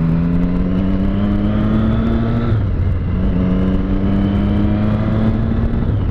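A motorcycle engine revs up through the gears, rising in pitch, close by.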